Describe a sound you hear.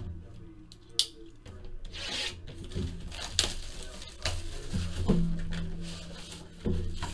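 Plastic wrap crinkles as it is torn off a box.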